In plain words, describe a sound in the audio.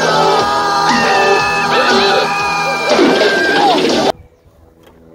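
A cartoon creature screams loudly and wildly.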